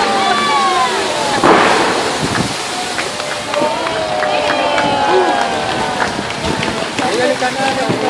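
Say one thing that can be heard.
Fountain jets hiss and splash as water shoots upward.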